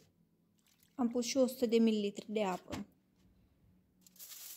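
Water pours from a mug into a dish.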